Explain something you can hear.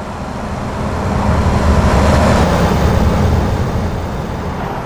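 A passing truck roars by and fades.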